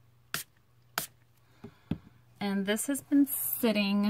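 A small plastic bottle is set down on a table with a light tap.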